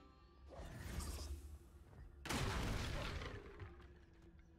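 Wooden planks crash and clatter as they are smashed apart.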